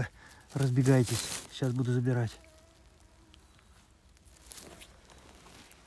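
A hand rustles through dry needles and moss.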